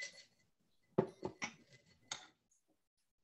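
Metal cocktail tins clink and knock on a table.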